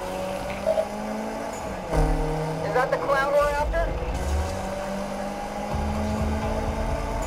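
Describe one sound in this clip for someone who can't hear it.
A car engine roars steadily as the car speeds up.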